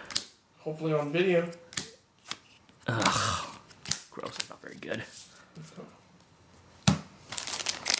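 Trading cards slide and flick against each other in someone's hands.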